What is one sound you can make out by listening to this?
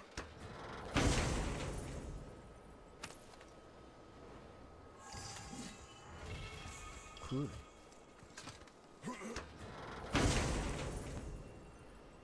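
A heavy chest lid bursts open with a loud whoosh.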